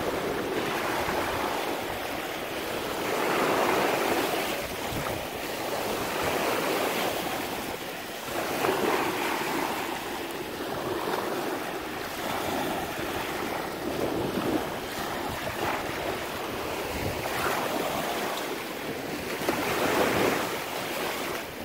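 Small waves wash over pebbles and recede in rolling surges.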